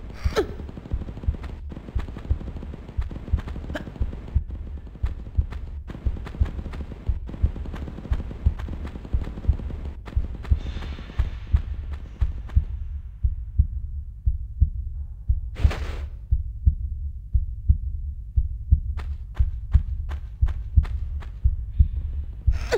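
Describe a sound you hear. Footsteps thud quickly and steadily on stone.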